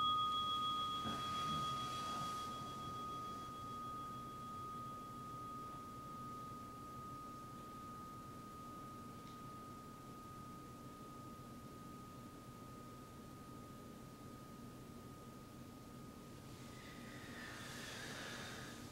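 Cloth rustles softly as a person bows down and later sits up.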